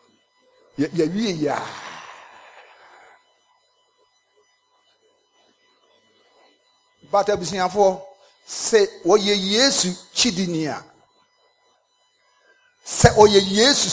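A middle-aged man preaches forcefully into a microphone in an echoing hall, with long pauses.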